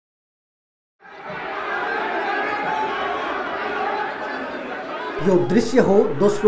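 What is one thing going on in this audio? A crowd of men shouts and clamours in a large hall.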